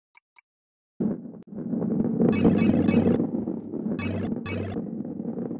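A ball rolls rumbling along a track.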